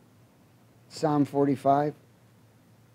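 A man speaks a few words calmly through a microphone.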